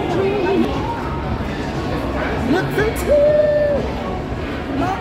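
A crowd chatters loudly all around.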